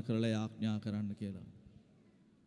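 A man speaks into a microphone, heard through loudspeakers.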